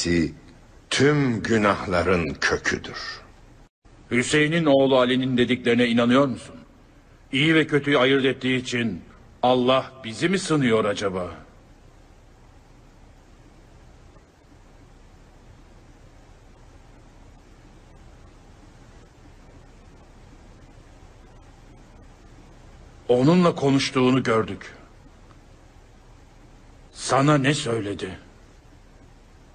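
An elderly man speaks slowly and gravely, close by.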